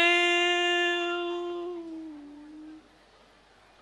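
A man sings a long held note into a microphone, then lets it fall and stop.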